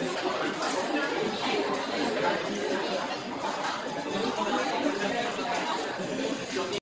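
Many young people chatter and talk at once, close by.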